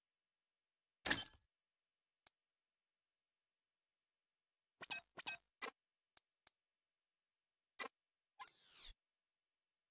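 Menu clicks and beeps sound sharply.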